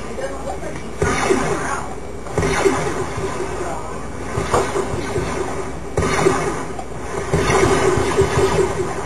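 Gunshots and blasts crack from a video game's fight.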